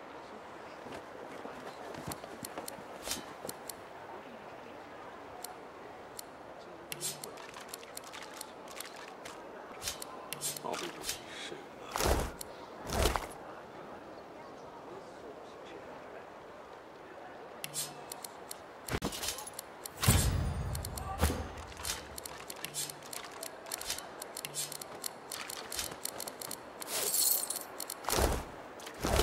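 Game menu sounds click and whoosh as items are selected.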